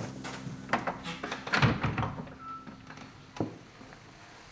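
A young woman knocks on a wooden door.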